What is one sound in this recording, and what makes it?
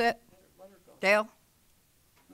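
A woman speaks briefly through a microphone.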